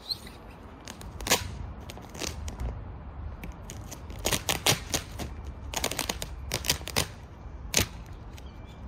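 Vinyl film crackles as it peels away from a car roof.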